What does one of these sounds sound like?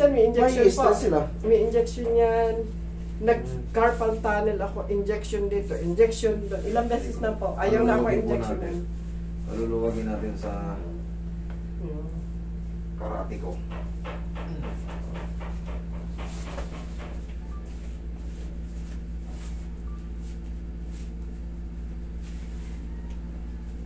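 An air conditioner hums steadily.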